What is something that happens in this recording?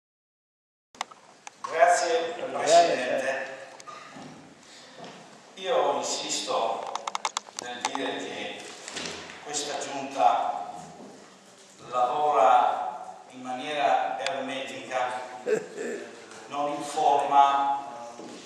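An elderly man speaks with animation into a microphone in an echoing room.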